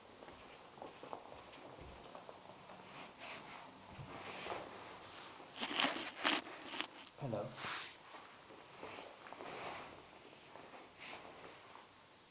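Clothing rustles and brushes close by.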